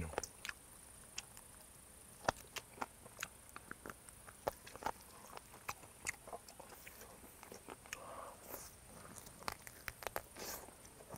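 A man slurps food close to a microphone.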